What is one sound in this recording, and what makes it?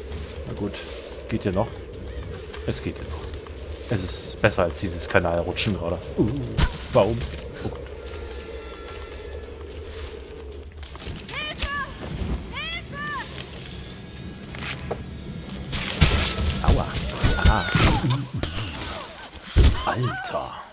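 Tree branches crack and snap.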